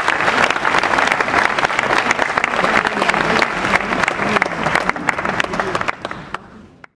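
A piano plays in an echoing hall.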